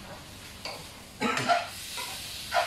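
A spatula scrapes against a frying pan.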